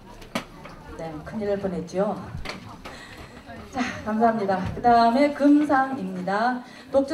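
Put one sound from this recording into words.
A woman speaks over a loudspeaker in a large hall.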